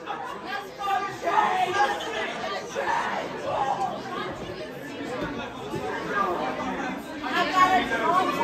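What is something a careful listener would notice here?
A rock band plays loudly and live in a large echoing hall.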